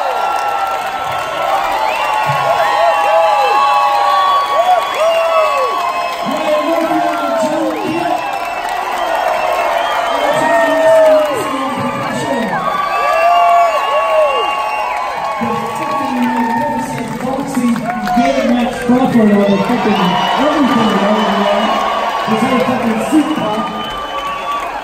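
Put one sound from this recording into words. A crowd whistles loudly.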